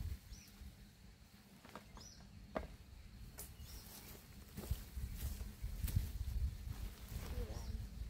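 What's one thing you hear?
Footsteps crunch on dry leaves and twigs.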